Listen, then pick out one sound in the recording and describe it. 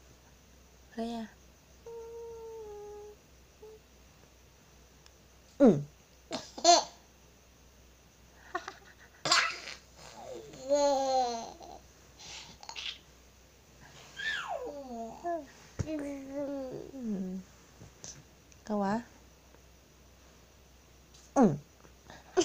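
A toddler babbles and squeals playfully up close.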